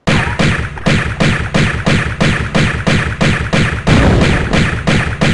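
Pistols fire in a quick, steady rhythm.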